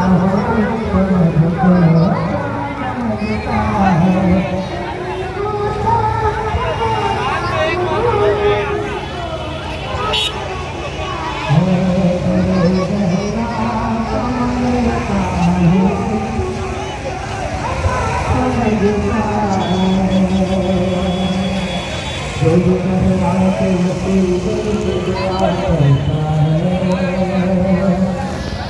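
A man's amplified chanting blares from loudspeakers.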